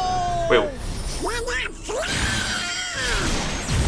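A squawky, duck-like voice shouts loudly.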